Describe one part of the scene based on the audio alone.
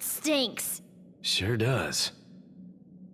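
A young woman speaks tearfully.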